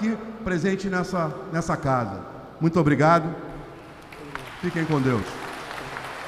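A middle-aged man speaks forcefully into a microphone in a large echoing hall.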